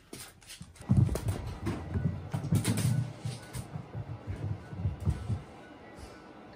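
A small dog's claws skitter and scamper on a hard floor.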